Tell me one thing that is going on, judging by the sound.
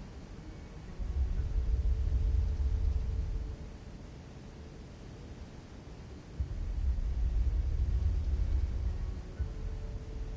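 Heavy stone slabs grind and rumble as they turn.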